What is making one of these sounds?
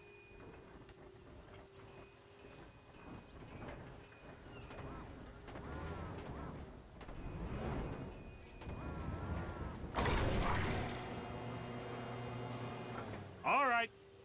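A crane's motor whirs and hums as it moves.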